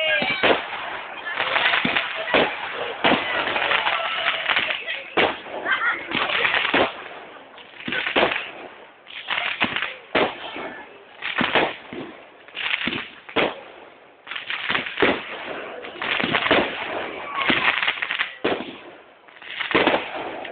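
Fireworks burst with loud bangs, one after another.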